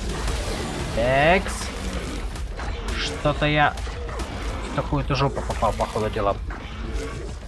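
A large creature lets out rough, pitched roars several times.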